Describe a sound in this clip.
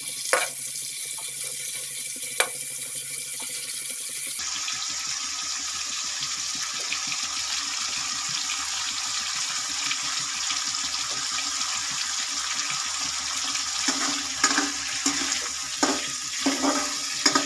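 A metal spatula scrapes and clinks against the pan.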